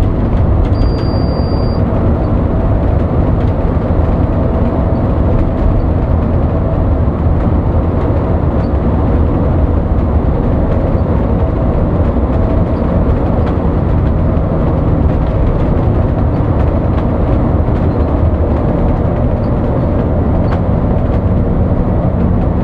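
A bus engine drones steadily.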